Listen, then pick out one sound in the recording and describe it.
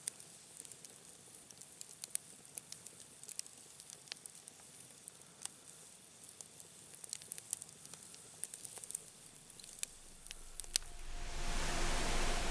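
Flames hiss and roar softly.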